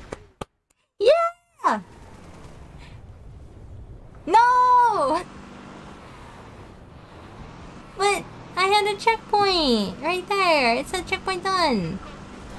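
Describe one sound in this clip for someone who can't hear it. A young woman talks animatedly into a close microphone, her voice rising and falling in pitch.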